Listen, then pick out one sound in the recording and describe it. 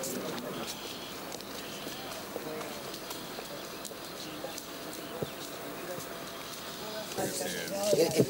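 A crowd of people murmurs outdoors.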